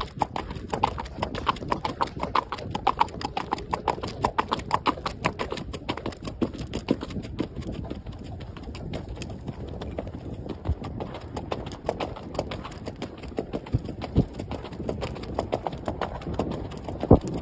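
Hooves clop quickly on hard ground.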